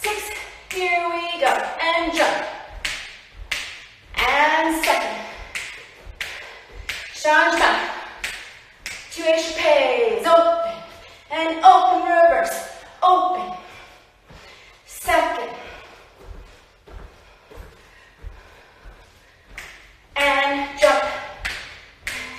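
A woman speaks clearly and with animation in a small echoing room.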